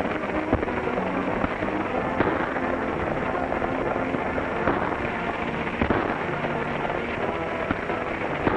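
Horses gallop with pounding hoofbeats.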